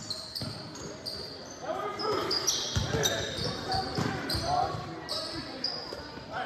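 Spectators murmur and call out in a large echoing gym.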